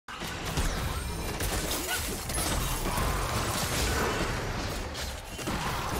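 Game characters clash with spell effects and weapon hits.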